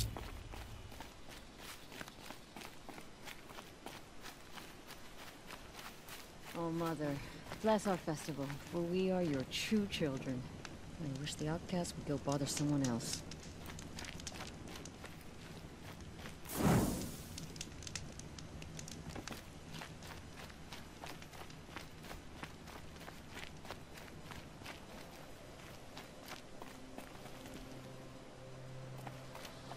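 Footsteps crunch steadily on dirt and gravel.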